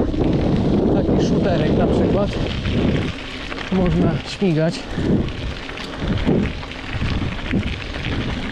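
Mountain bike tyres roll over a dirt track.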